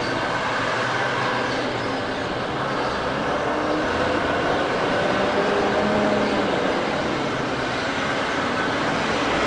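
A truck engine rumbles as the truck approaches.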